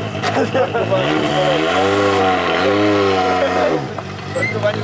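A rally car engine revs up and down loudly several times.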